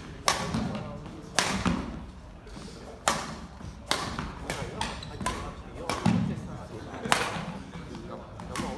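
Badminton rackets smack a shuttlecock back and forth in a large echoing hall.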